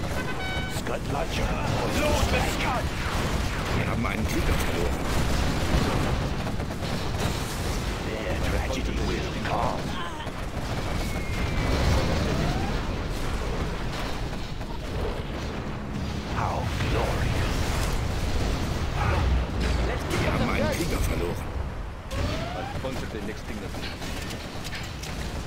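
Explosions boom and rumble again and again.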